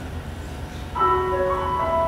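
A children's choir starts to sing.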